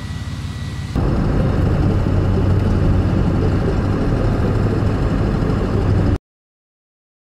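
A car engine rumbles while driving along a gravel road.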